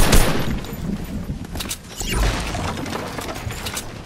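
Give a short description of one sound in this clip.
Wooden walls and ramps clatter as they are built.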